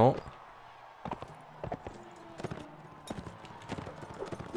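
Horse hooves thud on dry ground at a steady gallop.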